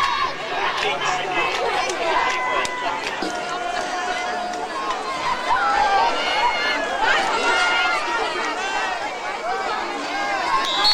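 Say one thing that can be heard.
A crowd of spectators cheers and yells.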